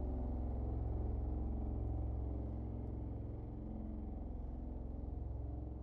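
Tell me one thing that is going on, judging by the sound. Small waves lap gently at the water's edge.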